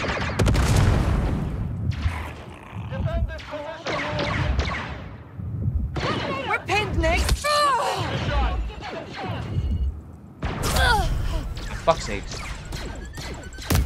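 Blaster shots zap and crack in quick bursts.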